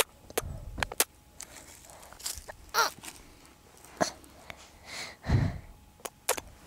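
A young child makes soft vocal sounds very close to the microphone.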